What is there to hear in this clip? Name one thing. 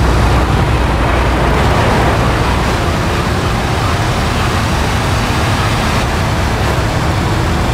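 Tyres roll over a snowy road.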